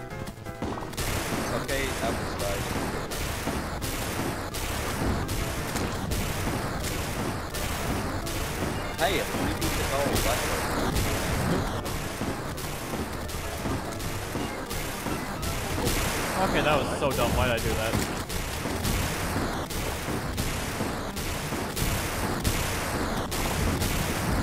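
Electronic game music plays with a steady beat.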